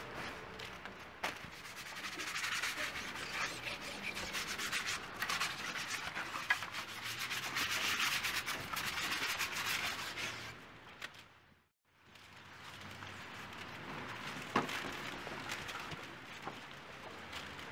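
Liquid splashes and spatters against a plastic sheet outdoors.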